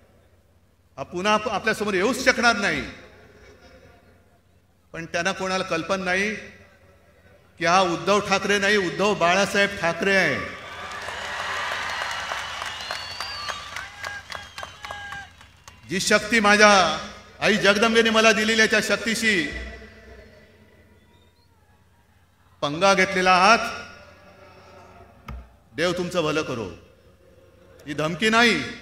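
A man speaks forcefully into a microphone, his voice echoing over loudspeakers outdoors.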